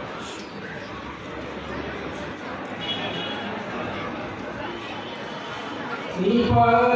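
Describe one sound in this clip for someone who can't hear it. Many people murmur and chatter in the background.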